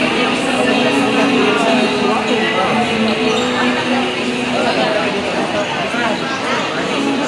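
A large crowd chatters loudly in an echoing hall.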